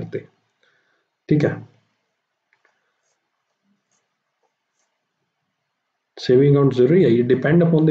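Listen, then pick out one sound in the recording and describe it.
A man speaks calmly into a close microphone, with long pauses.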